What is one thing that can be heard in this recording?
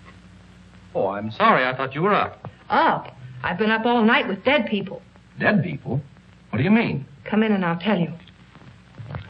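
A woman speaks urgently and close by.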